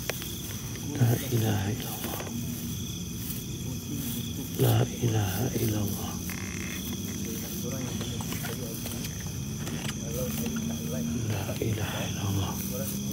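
A hand rustles and brushes through grass.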